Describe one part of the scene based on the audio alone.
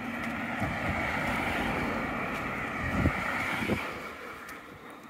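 Cars drive past close by on a road and fade away.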